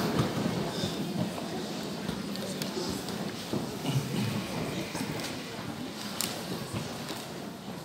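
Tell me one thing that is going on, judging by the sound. A man speaks calmly into a microphone over a loudspeaker in a large echoing hall.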